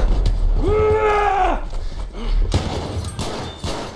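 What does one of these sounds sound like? Rifle shots crack loudly at close range.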